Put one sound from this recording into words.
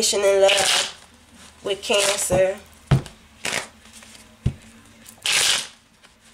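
Cards are shuffled by hand with soft flicking and rustling.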